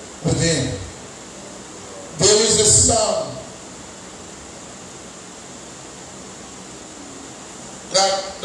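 A man speaks in short, loud bursts through a microphone and loudspeakers.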